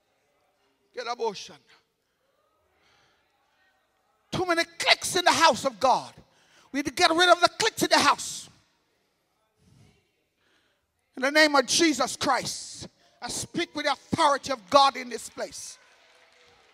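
A man preaches with animation through a microphone and loudspeakers in a large echoing hall.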